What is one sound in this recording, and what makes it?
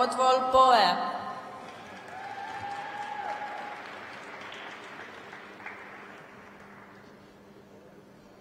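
A crowd applauds in a large echoing arena.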